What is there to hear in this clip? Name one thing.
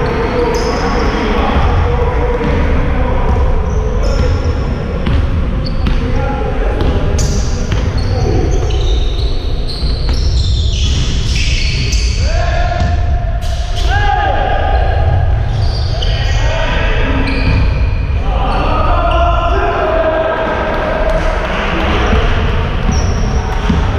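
Young men shout to each other across an echoing hall.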